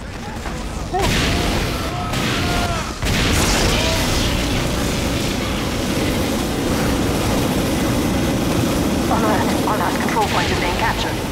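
A flamethrower roars in a steady gushing rush.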